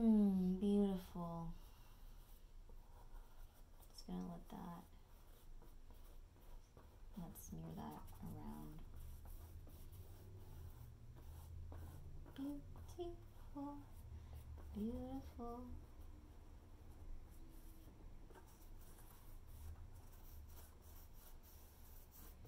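A paintbrush dabs and brushes softly against a canvas.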